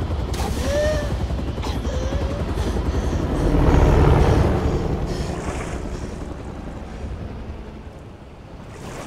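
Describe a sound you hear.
A helicopter's rotor roars loudly and then fades.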